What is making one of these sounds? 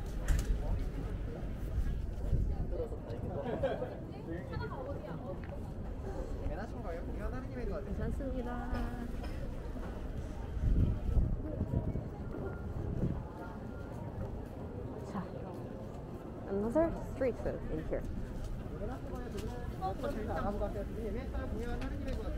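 Men and women chat nearby and further off in a busy street crowd.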